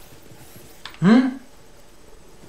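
A man briefly exclaims close to a microphone.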